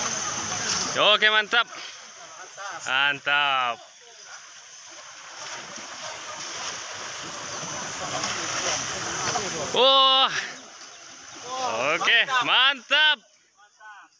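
Water splashes as people wade through a river.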